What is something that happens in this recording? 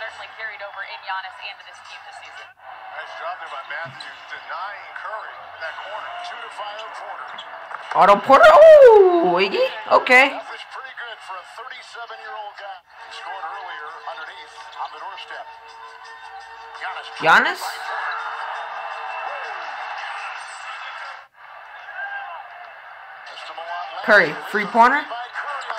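A TV commentator talks with animation.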